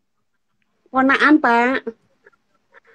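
An elderly woman speaks over an online call.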